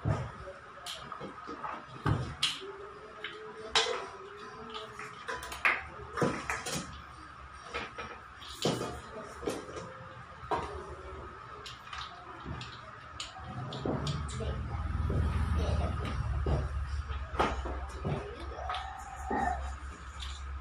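Metal bowls and utensils clink and clatter.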